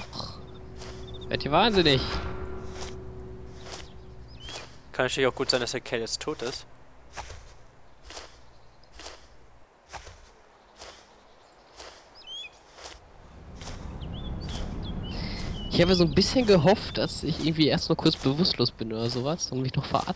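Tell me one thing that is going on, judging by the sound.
Grass rustles as a person crawls through it.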